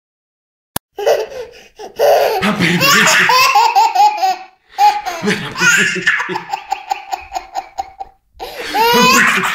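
A toddler laughs loudly and gleefully close by.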